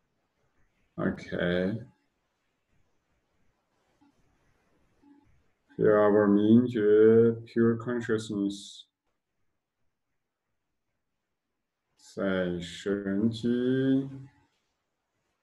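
A man speaks calmly and slowly, close by, in short phrases with long pauses.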